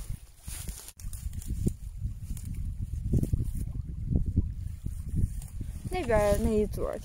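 Hands pull and tear at grass roots.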